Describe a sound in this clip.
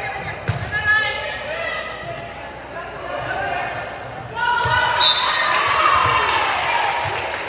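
Girls and young women chatter and call out in a large echoing hall.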